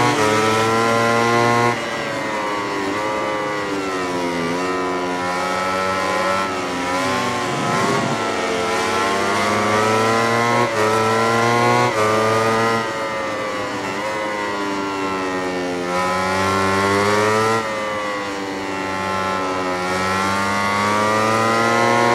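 A motorcycle engine screams at high revs, its pitch dropping sharply on braking and rising again as it accelerates through the gears.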